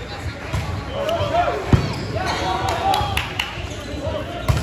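Young men shout to each other during play.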